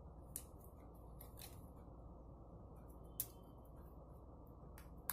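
Small plastic parts click and rattle as they are handled close by.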